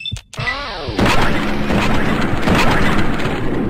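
A laser rifle fires with loud crackling zaps.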